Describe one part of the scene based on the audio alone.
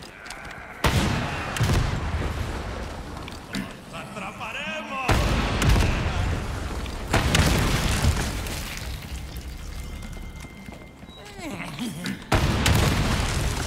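Loud gunshots boom and echo.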